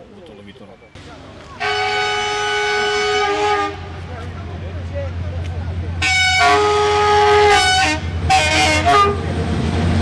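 A locomotive rumbles along the tracks, approaching.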